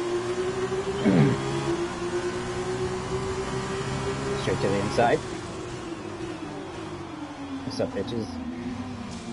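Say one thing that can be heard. Other racing cars roar past nearby.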